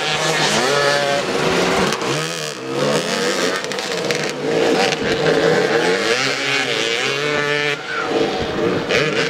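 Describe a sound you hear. Motorcycle engines rev and whine loudly, rising and falling in pitch.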